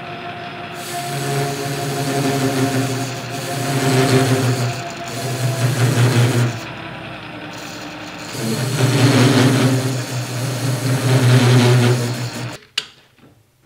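A cutting tool scrapes and screeches against spinning metal in loud surges.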